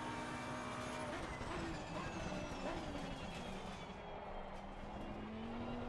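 A racing car engine drops in pitch as the car brakes and shifts down.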